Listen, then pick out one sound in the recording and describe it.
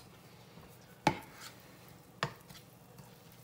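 A spatula scrapes and knocks against a pan.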